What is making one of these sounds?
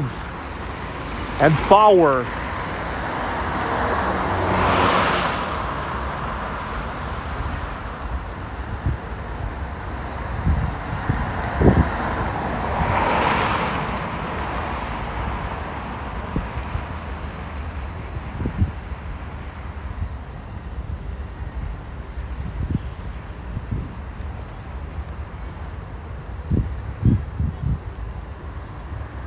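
Low traffic rumbles steadily along a street outdoors.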